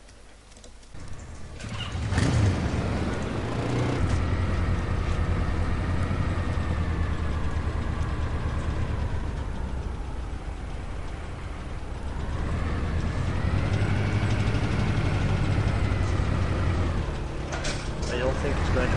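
A vehicle engine drones and revs as it drives over rough ground.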